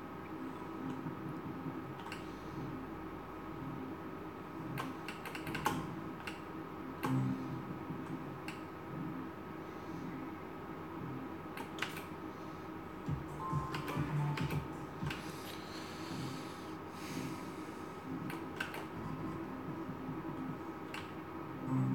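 A slot machine plays steady electronic tones and jingles as its reels spin.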